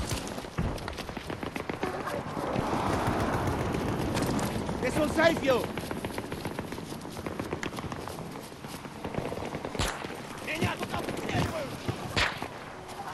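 Gunshots crack in the distance.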